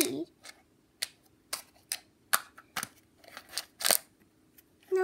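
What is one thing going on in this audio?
Small plastic toys tap and knock on a hard floor.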